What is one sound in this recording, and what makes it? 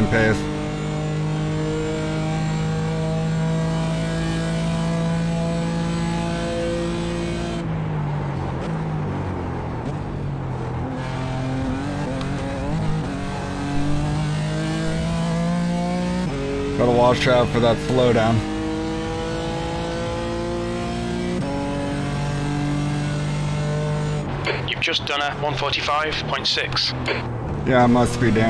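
A racing car engine roars steadily, rising in pitch and dropping with each gear change.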